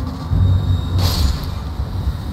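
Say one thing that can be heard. A sword swings and slashes into a creature with a sharp hit.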